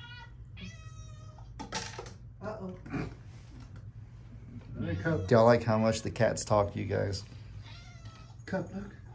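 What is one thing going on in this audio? A cat meows.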